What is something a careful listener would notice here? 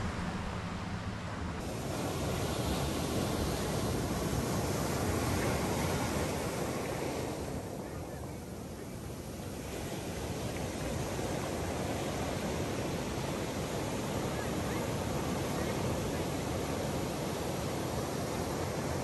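Ocean waves break and wash up onto a sandy beach.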